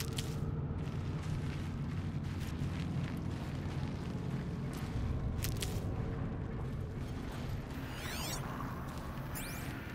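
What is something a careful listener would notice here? Wind howls steadily in a low roar.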